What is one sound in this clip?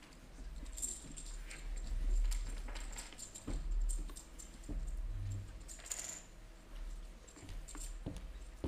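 People shuffle and knock about softly in a large echoing hall.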